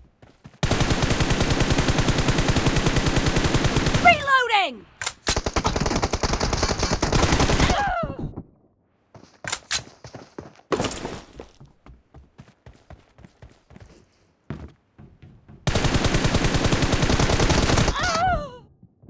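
A rifle fires in long, rapid bursts.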